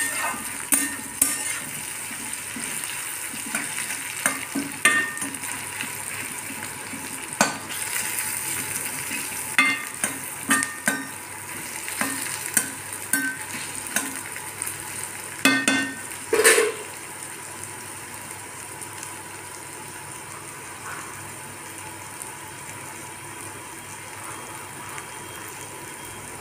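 Food sizzles gently in a pan.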